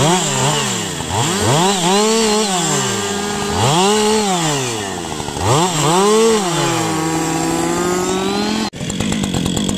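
A chainsaw engine revs up and down repeatedly, close by.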